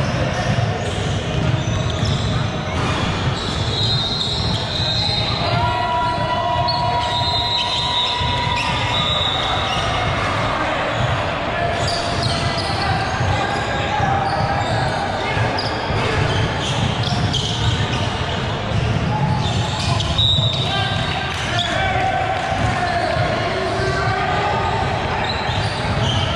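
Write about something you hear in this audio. Sneakers squeak sharply on a hardwood court in a large echoing gym.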